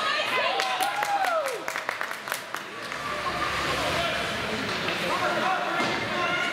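Ice skates scrape and hiss across the ice in an echoing arena.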